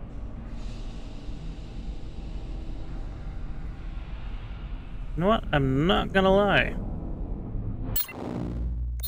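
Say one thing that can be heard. A low hum drones in a large hall.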